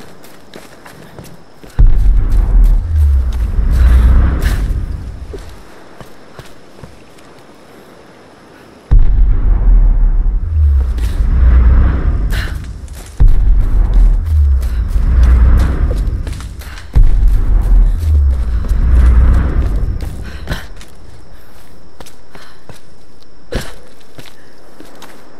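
Footsteps crunch on leaves and earth.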